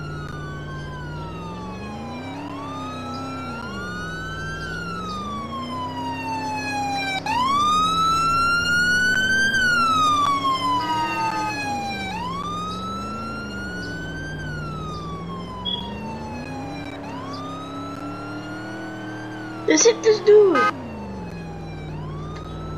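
A car engine revs up and down as it shifts gears.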